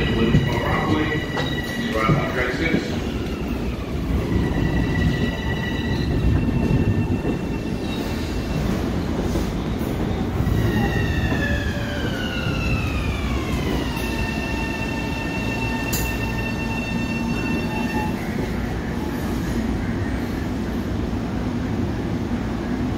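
A parked train's engine rumbles steadily nearby.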